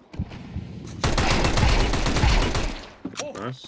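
A pistol fires a rapid string of loud shots.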